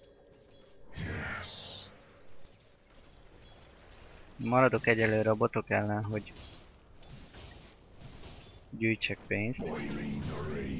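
Fighting sound effects clash and crackle in a game battle.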